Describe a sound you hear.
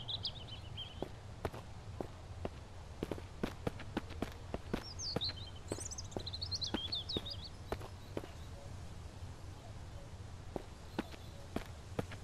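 Footsteps crunch on dry ground and gravel.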